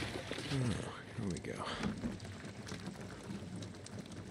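Gasoline glugs and splashes as it is poured from a can.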